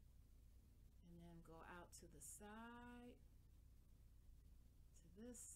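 A woman speaks calmly close to a microphone.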